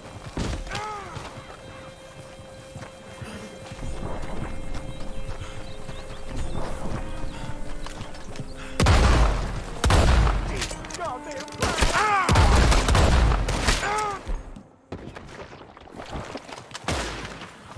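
A wooden wagon rolls and creaks over a dirt track.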